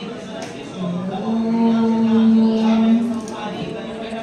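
Women chant together in a steady, drawn-out tone.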